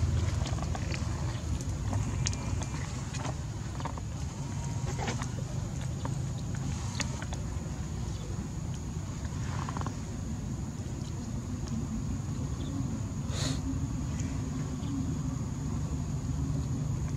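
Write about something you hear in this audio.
A baby monkey squeaks softly close by.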